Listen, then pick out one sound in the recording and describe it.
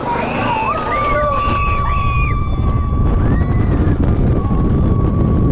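Wind roars past as the coaster speeds downhill.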